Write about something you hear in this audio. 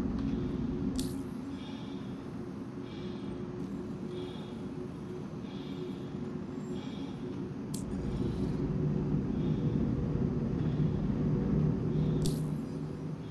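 A ship interface chirps with short electronic clicks.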